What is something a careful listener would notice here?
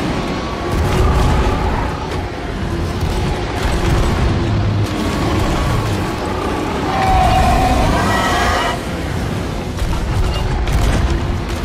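A cannon fires with a loud boom.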